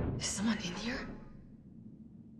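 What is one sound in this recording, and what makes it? A young woman calls out warily.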